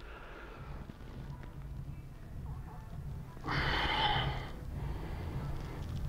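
Gloved fingers rub and press on bare skin.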